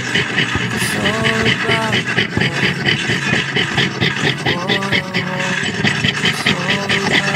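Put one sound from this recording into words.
A fine saw blade rasps back and forth through metal in quick strokes.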